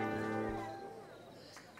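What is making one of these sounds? An orchestra plays a final chord.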